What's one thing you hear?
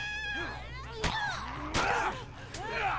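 Heavy blows land in a close scuffle.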